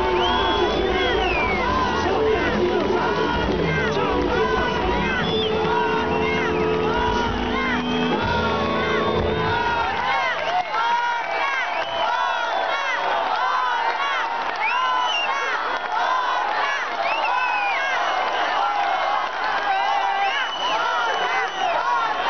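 A large crowd cheers, shouts and whistles.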